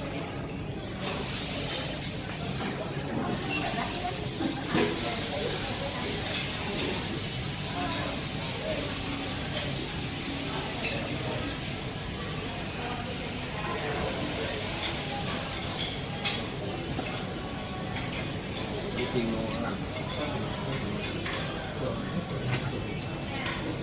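Egg sizzles in a pan.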